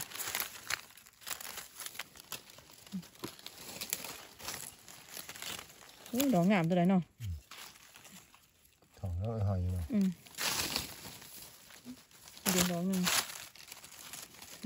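Dry leaves rustle and crackle as hands move through them.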